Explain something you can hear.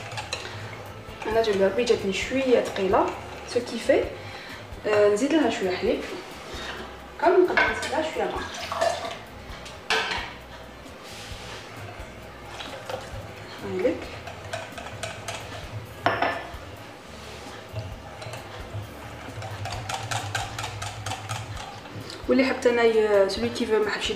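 A whisk clinks and scrapes against a glass bowl.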